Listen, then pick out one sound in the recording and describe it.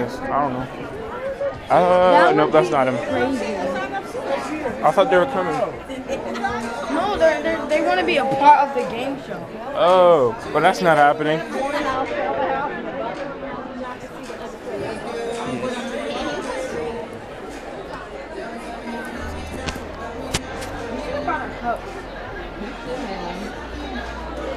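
People chatter in a large, echoing hall.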